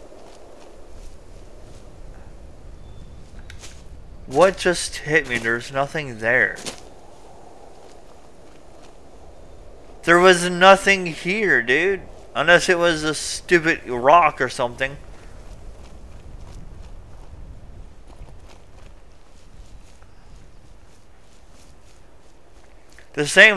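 Footsteps crunch on gravel and dry leaves.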